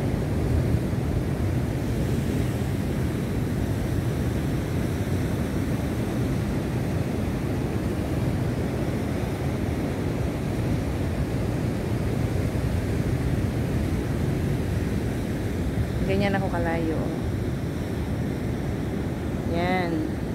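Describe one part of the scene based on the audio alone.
Wind blows across outdoors.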